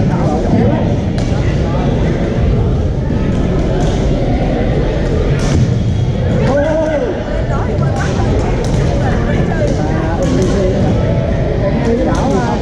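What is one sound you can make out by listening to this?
A crowd of players chatters in the background.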